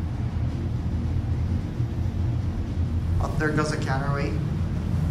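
An elevator hums and rumbles low as it moves.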